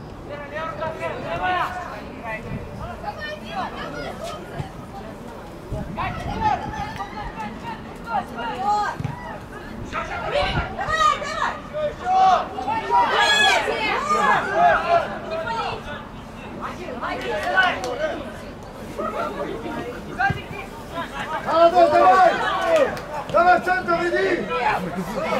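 A football is kicked with dull thuds.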